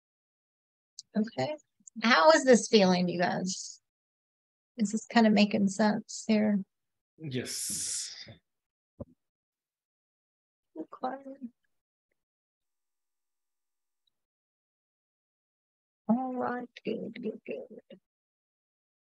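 A woman speaks calmly through a microphone, in short bursts with pauses.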